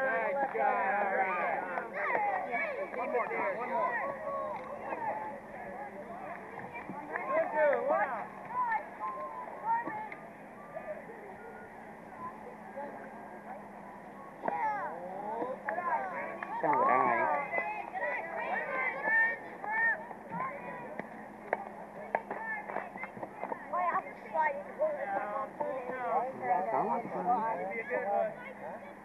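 Children and adults shout and cheer nearby outdoors.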